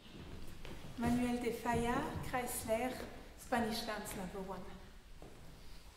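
A woman speaks to the audience with animation.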